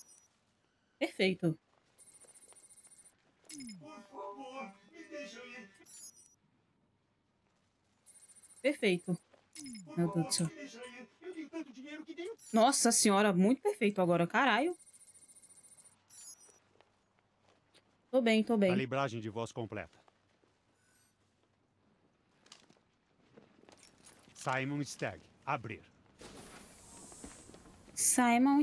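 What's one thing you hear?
A young girl talks with animation into a close microphone.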